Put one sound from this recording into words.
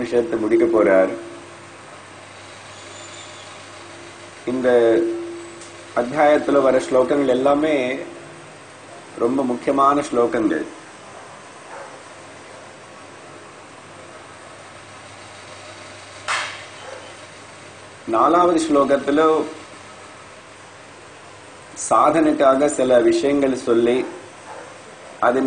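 An elderly man speaks calmly into a close microphone, in bursts with pauses.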